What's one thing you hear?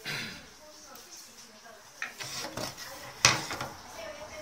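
A wooden board is set down with a knock on a table.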